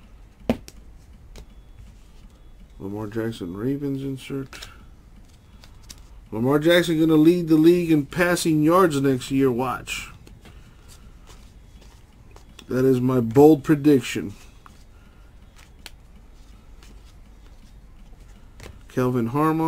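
Trading cards rustle and slide against each other as hands sort through them.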